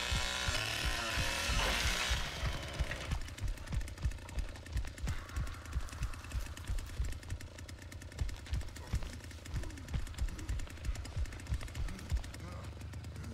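A chainsaw engine idles with a rapid, chugging rhythm.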